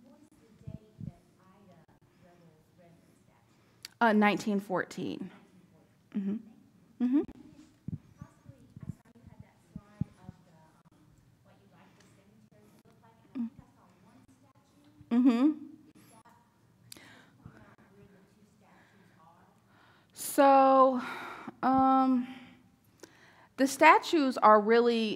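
A woman speaks through a microphone in a steady lecturing voice.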